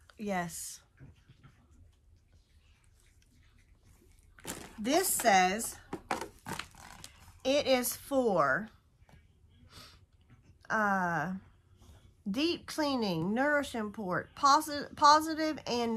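A middle-aged woman talks calmly and close to a microphone, pausing between phrases.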